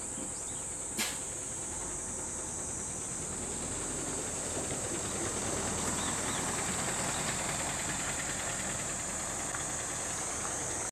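A bus engine rumbles steadily close by.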